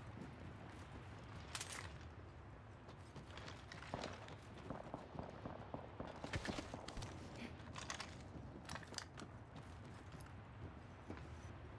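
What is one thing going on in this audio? Quick footsteps patter across a hard floor.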